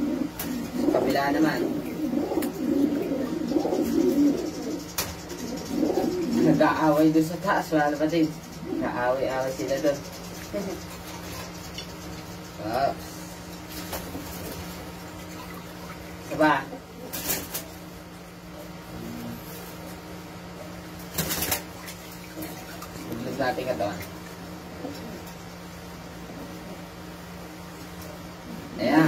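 Water splashes and sloshes in a basin.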